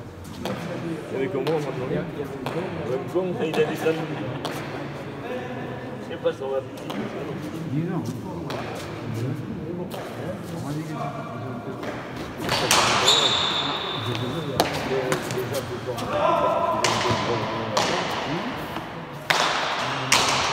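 A ball smacks hard against a wall and the floor, echoing in a large hall.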